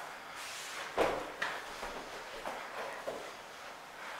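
Bodies thump and scuffle on a padded mat.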